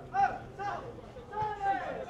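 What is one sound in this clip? A man shouts from the sideline.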